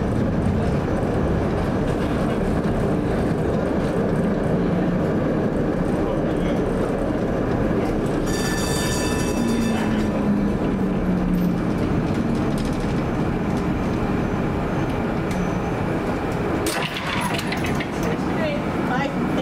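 A tram rumbles steadily along its rails.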